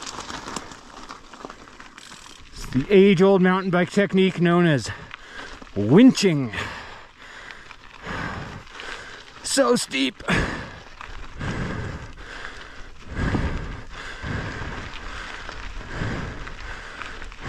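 Bicycle tyres crunch and rattle over loose gravel.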